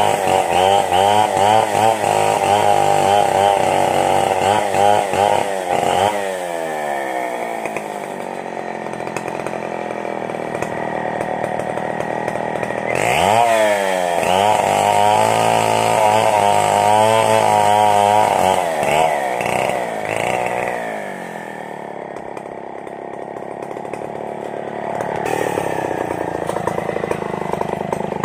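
A chainsaw engine roars and revs up and down while cutting wood.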